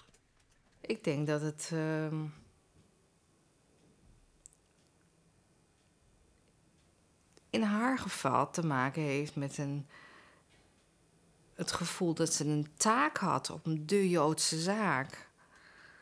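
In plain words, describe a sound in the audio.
A middle-aged woman speaks calmly and thoughtfully, close to the microphone, with pauses.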